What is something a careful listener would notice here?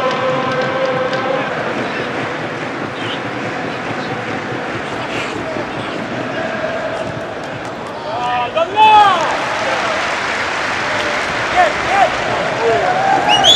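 A large stadium crowd chants and cheers outdoors.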